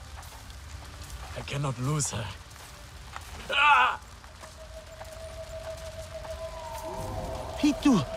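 Footsteps rustle through undergrowth.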